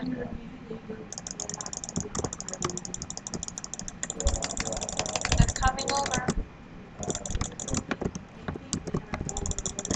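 A game block breaks with rapid crackling taps.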